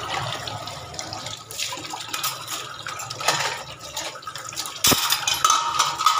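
Metal dishes clank against each other.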